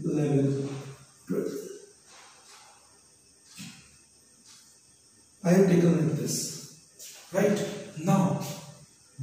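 A man speaks in a calm, explaining manner close by.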